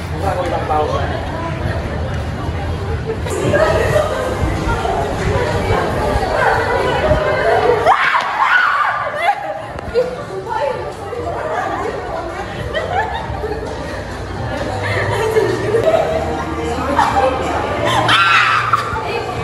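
Young women chatter and laugh nearby.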